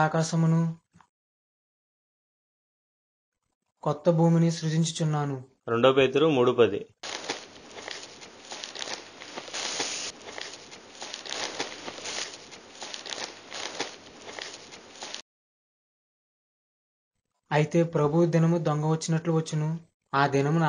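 A young man reads aloud from a book, close by.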